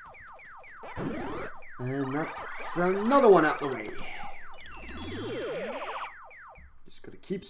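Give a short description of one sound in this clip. An electronic game sound glides up and down in pitch.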